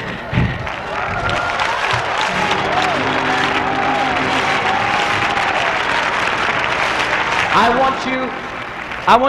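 A large crowd cheers and sings loudly.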